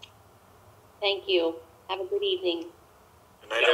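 A middle-aged woman speaks briefly over an online call.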